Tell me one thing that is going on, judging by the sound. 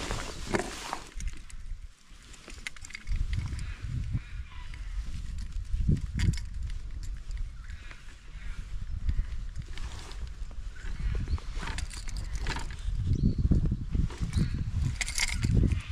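Fishing tackle clicks and rustles in a man's hands.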